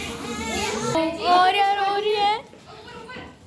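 A baby cries loudly.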